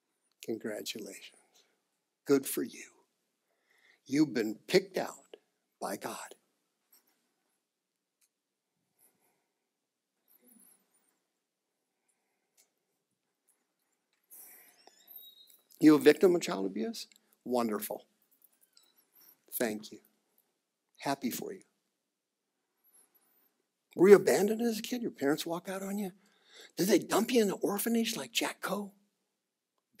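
A man speaks with animation through a microphone, pausing often.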